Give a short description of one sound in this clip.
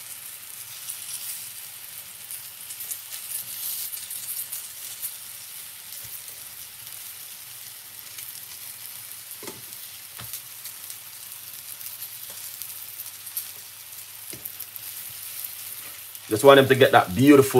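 Oil sizzles softly in a frying pan.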